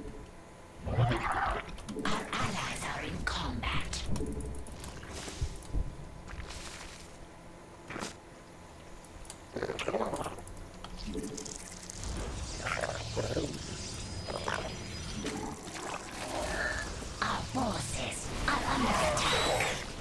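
Game sound effects of creatures fighting chirp and clatter.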